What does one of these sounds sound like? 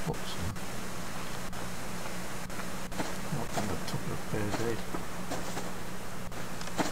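Footsteps swish through grass.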